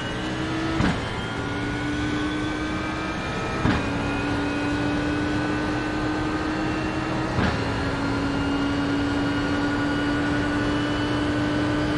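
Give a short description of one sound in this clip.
A racing car engine roars steadily at high revs, rising in pitch as it accelerates.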